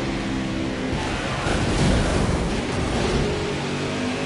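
A car scrapes and crashes against a wall.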